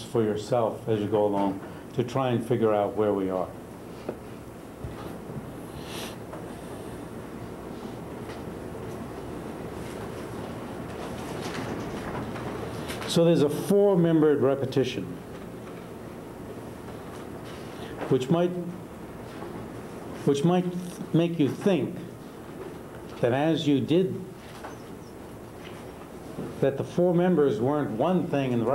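A middle-aged man speaks calmly and slowly, with long pauses.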